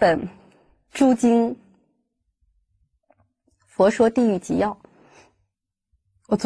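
A woman speaks calmly and closely into a microphone, in short phrases with pauses.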